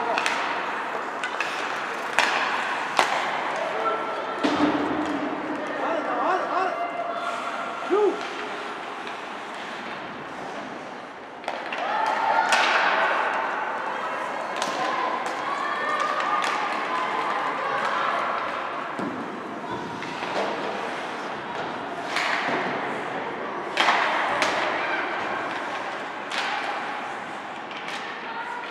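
Skate blades scrape across ice in a large echoing arena.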